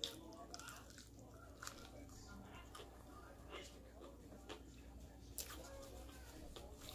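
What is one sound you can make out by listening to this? A woman chews crunchy fried food close to a microphone.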